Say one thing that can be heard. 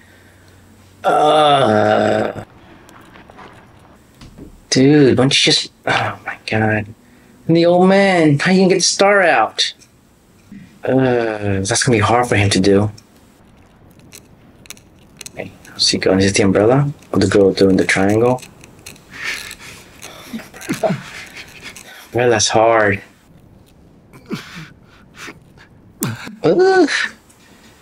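A man talks with animation close to a microphone, pausing often.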